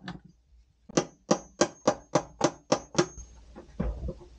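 A hand tool clicks rapidly in a steady rhythm.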